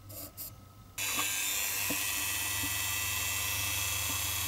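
A rotary tool whirs steadily at high speed.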